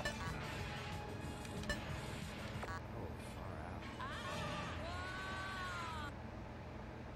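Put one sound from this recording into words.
Arcade game music and sound effects play, ending with a falling tone.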